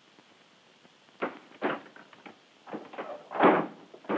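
Cloth rustles as a man rummages through a case.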